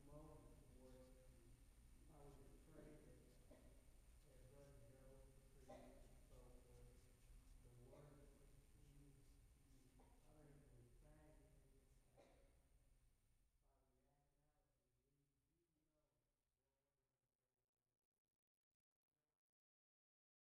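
A man speaks calmly through a microphone in a large room, his voice slowly fading away.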